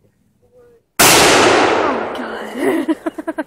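A gunshot bangs loudly outdoors and echoes away.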